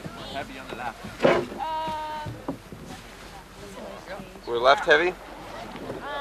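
A man talks nearby, outdoors on open water.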